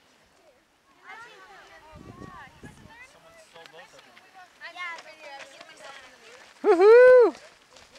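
A group of young people talk and call out outdoors.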